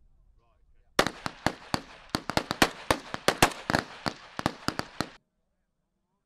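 A rifle fires a rapid string of loud, sharp shots outdoors.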